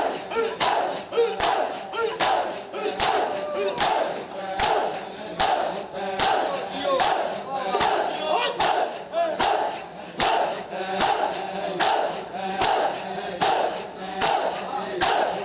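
A crowd of men chant loudly together.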